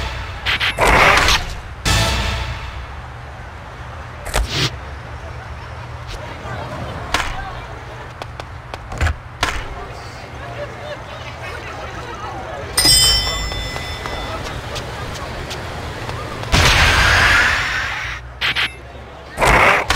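Skateboard wheels roll and grind on concrete and rails.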